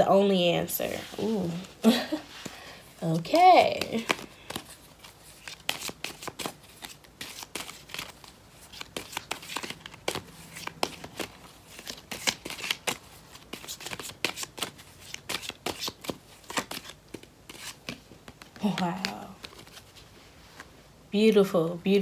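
Playing cards are shuffled with quick, soft riffling clicks.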